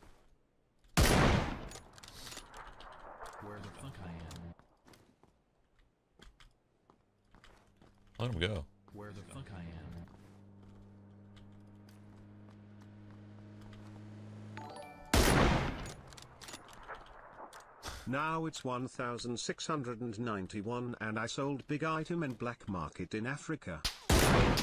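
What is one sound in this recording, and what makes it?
Loud rifle shots ring out with a short echo.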